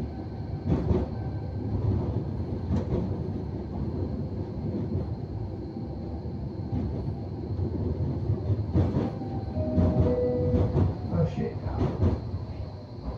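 Tram wheels clatter and knock over track joints.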